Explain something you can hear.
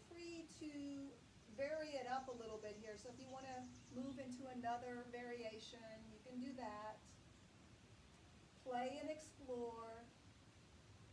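A young woman speaks calmly nearby, giving instructions.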